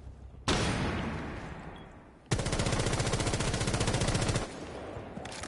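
An automatic rifle fires rapid bursts close by.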